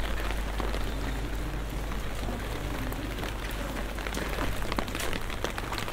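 Light rain patters on wet cobblestones.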